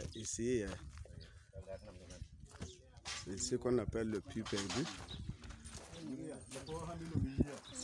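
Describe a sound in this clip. A group of people talk at once nearby.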